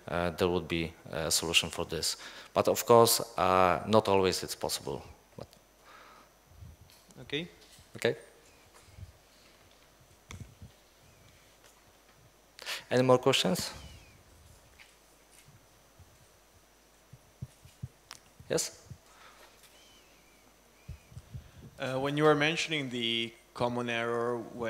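A man speaks calmly into a microphone in a large room, pausing often.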